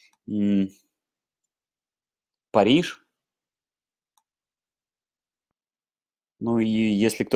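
A man speaks calmly in short bursts over an online call, with long pauses.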